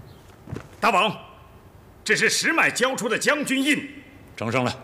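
A man speaks with feeling, close by.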